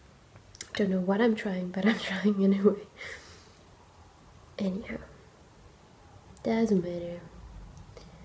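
A young woman speaks close by, calmly.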